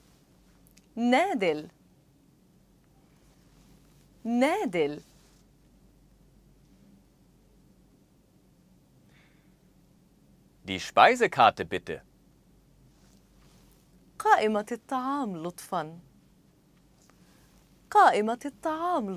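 A woman speaks calmly and clearly close to a microphone, with pauses between phrases.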